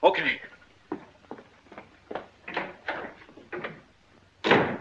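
An older man speaks firmly, close by.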